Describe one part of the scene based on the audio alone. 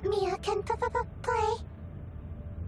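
A young girl's cartoonish voice speaks briefly in a high, sing-song tone.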